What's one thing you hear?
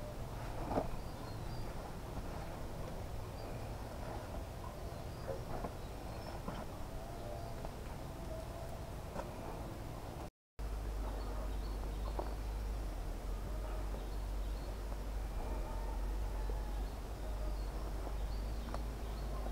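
Footsteps rustle through leafy plants on a hillside.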